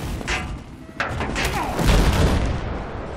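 A helicopter explodes with a loud boom.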